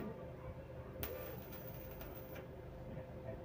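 An electric welding arc crackles and buzzes.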